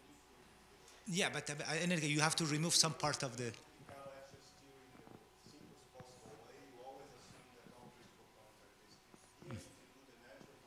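A middle-aged man speaks calmly through a lapel microphone.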